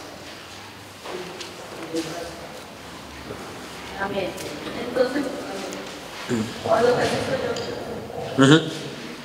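A man speaks quietly and calmly through a microphone.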